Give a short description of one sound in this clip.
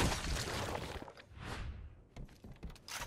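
A knife stabs into flesh with wet thuds.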